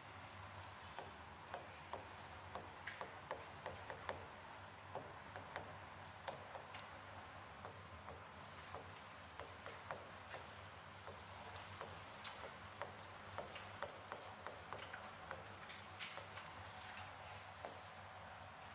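A pen taps and scratches against a hard writing board.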